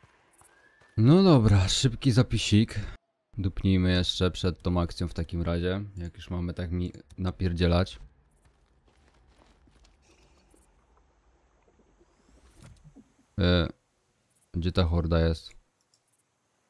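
A young man talks with animation into a close microphone.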